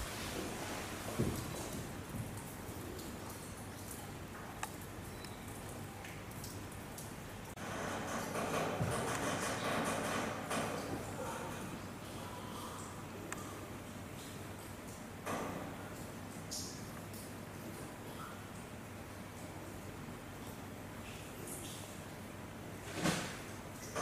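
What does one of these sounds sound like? Metal mesh rattles and knocks as an orangutan climbs on it.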